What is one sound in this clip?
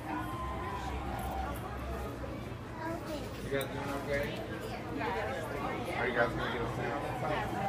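Fabric rustles as a costume is handled.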